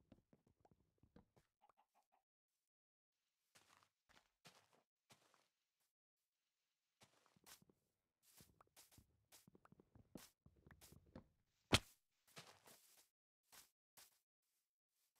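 Footsteps crunch softly on grass.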